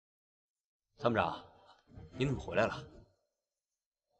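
A young man speaks up nearby with surprise.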